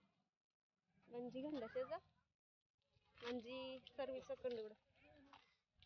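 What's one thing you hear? A young girl talks with animation nearby.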